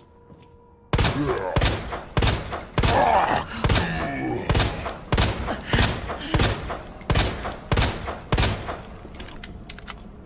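A handgun fires several loud shots in quick succession.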